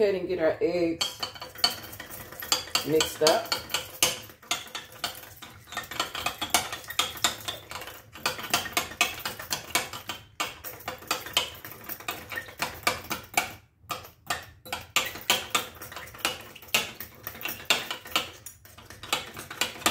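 A whisk beats eggs quickly, clinking against a glass bowl.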